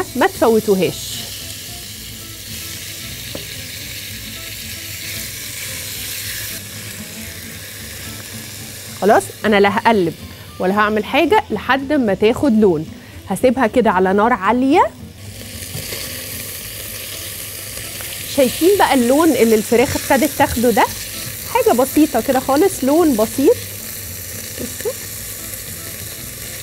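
Chicken sizzles in a hot pan.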